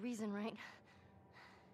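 A young woman speaks softly and wearily.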